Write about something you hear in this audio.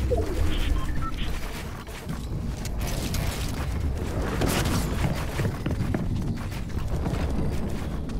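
Video game building pieces snap into place with quick clicks.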